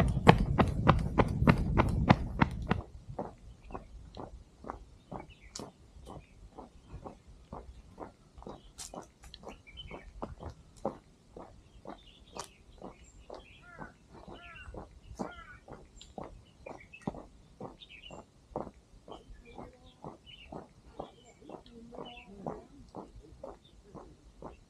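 Running footsteps patter steadily on a paved path.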